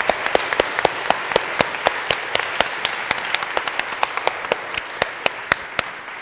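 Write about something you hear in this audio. People applaud with quick, steady clapping.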